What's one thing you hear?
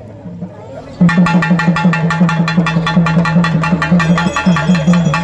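Two drummers beat loudly with a fast, steady rhythm.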